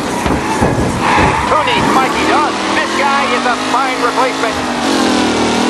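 Tyres squeal on asphalt as a racing car corners.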